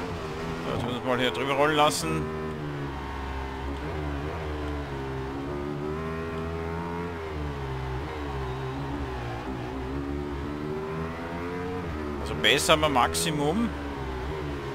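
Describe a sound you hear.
Other motorcycles roar past nearby.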